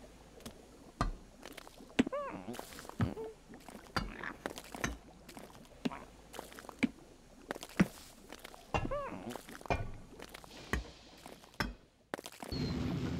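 Sharp knocks and chiming tones ring out in quick succession.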